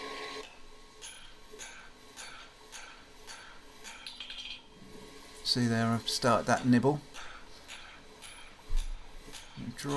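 A hammer strikes hot metal on an anvil with sharp, ringing blows in a steady rhythm.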